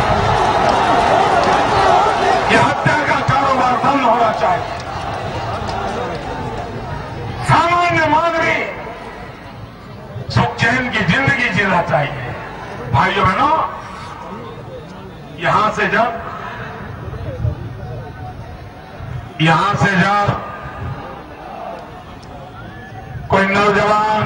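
An older man speaks forcefully into a microphone, heard through loudspeakers echoing outdoors.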